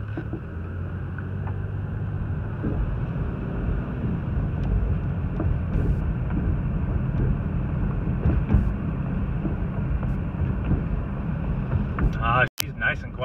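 A car engine hums steadily from inside a car as it drives slowly.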